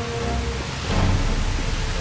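A burst of flame roars and crackles.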